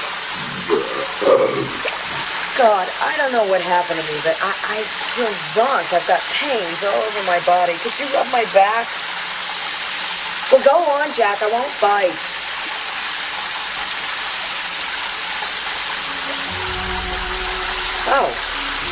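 A shower sprays water steadily.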